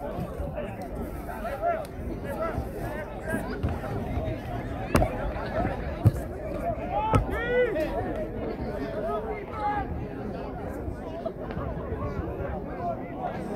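A crowd of players and spectators talks and shouts outdoors.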